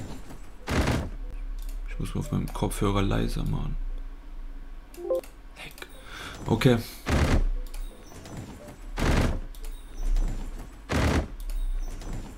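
Slot machine reels spin and thud to a stop, over and over.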